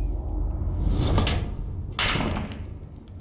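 Billiard balls clack sharply together.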